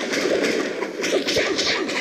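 A fiery blast bursts.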